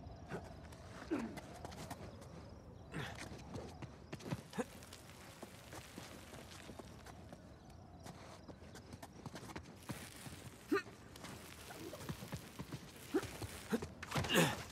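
A climber's hands and boots scrape and thud against rock.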